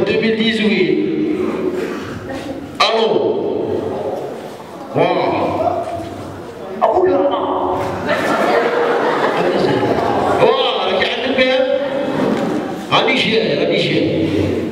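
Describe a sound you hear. A young man answers on stage through a headset microphone.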